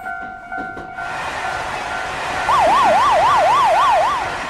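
A high-speed train rushes past with a loud whoosh.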